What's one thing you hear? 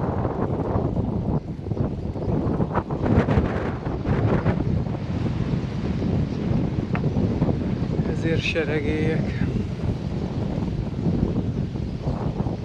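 Tyres roll steadily over a rough country road.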